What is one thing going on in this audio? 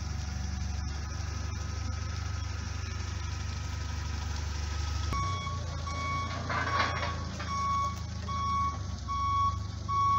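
A forklift engine hums steadily nearby.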